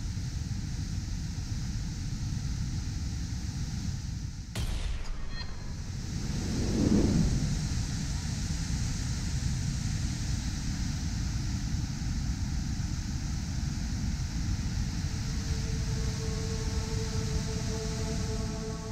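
Floodwater roars steadily over a weir outdoors.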